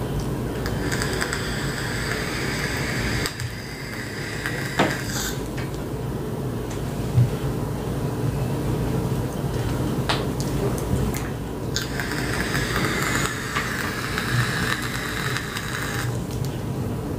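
A woman inhales through a vape with a steady crackling hiss.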